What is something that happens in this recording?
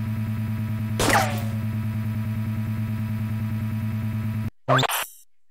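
An energy shield hums steadily with a low drone.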